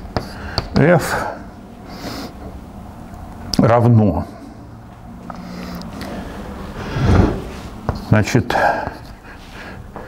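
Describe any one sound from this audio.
An elderly man speaks slowly and calmly in a room with some echo.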